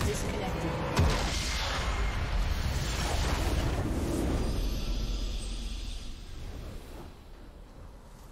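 A triumphant fanfare swells and fades.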